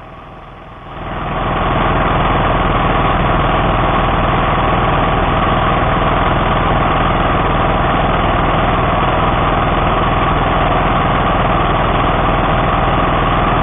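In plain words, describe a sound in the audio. A mower engine starts and runs with a loud, steady roar.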